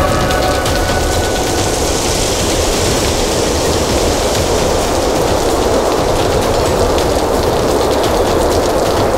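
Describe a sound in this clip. Dry leaves rustle and swirl in the wind.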